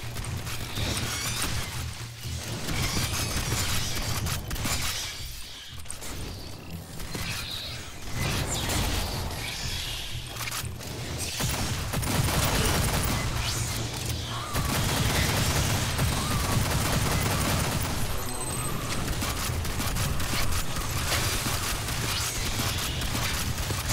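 Rapid gunfire rattles loudly and continuously.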